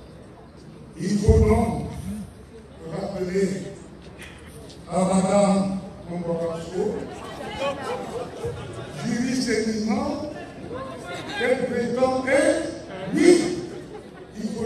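An elderly man speaks forcefully into a microphone over a loudspeaker, outdoors.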